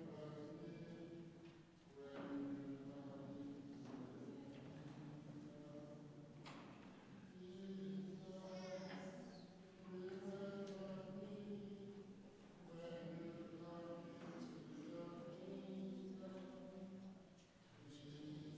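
A congregation sings a slow hymn together in a large echoing hall.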